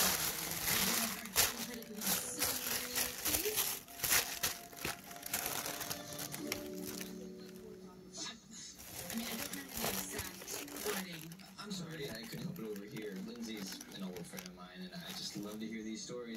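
Plastic wrapping crackles as it is handled.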